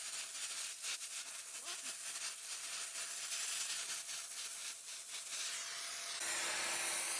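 A gas torch flame roars with a steady hiss.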